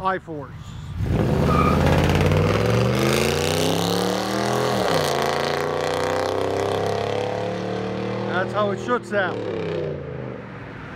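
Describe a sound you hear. A pickup truck's loud exhaust roars as it accelerates away down the road.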